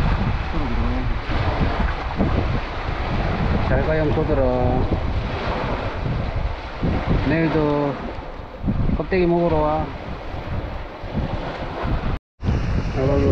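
Small waves lap on a stony shore.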